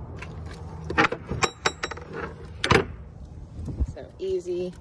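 A metal latch clicks open.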